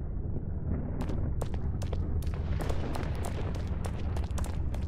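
Quick footsteps run across stone.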